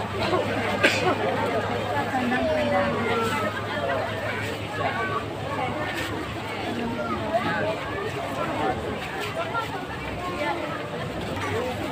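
A dense crowd of men and women chatters all around.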